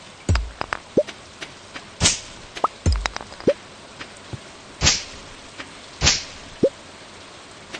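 Short bright pops sound as items are picked up.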